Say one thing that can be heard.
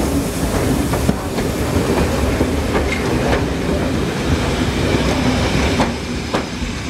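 Steam hisses loudly from a passing locomotive.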